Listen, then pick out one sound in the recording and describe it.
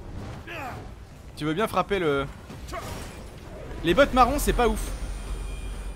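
A young man talks with animation close to a headset microphone.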